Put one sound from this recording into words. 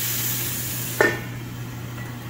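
A metal lid clanks onto a pan.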